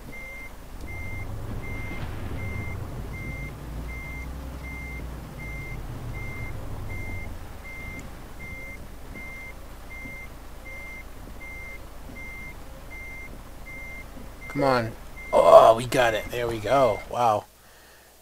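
A truck engine rumbles low and steadily, then cuts out.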